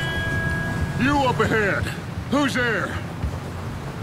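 A man shouts loudly from close by.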